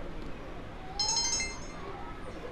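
A bright electronic chime rings out.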